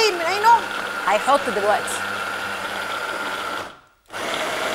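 A hand blender whirs steadily.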